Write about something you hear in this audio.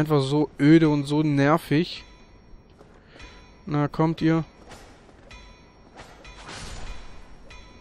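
A sword strikes a shield with metallic clangs.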